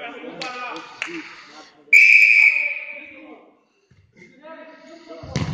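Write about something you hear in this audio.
Young men shout and call out in an echoing hall.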